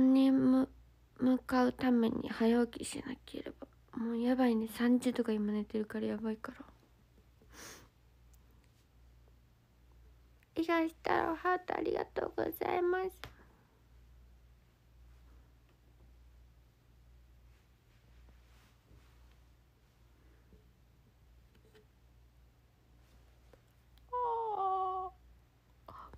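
A young woman speaks softly and close to a phone microphone, in short bursts with pauses.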